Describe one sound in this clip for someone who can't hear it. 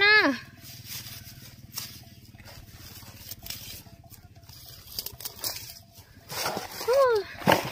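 Grass stalks rustle and snap as they are cut.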